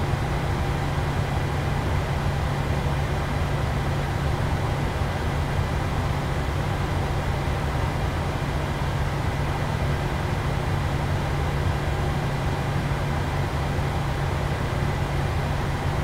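Jet engines hum steadily as an airliner taxis.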